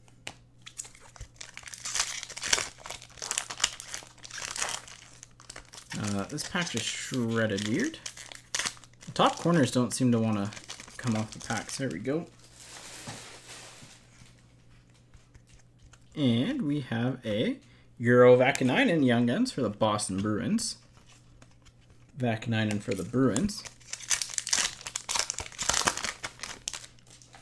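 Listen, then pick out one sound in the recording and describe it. A plastic wrapper crinkles and rustles as it is torn open.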